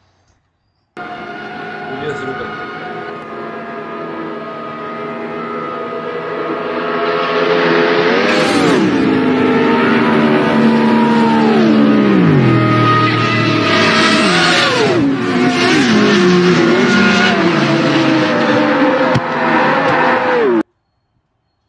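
Racing car engines roar and whine past, dropping in pitch as they go by.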